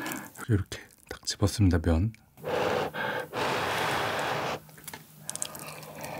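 A young man chews and slurps food close to a microphone.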